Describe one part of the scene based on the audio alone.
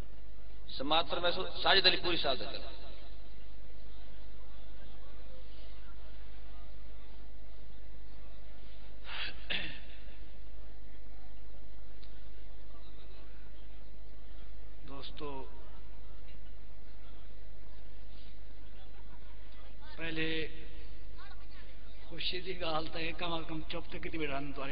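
A crowd of men laughs and murmurs nearby.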